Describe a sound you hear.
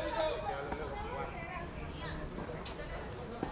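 A man talks calmly at a distance.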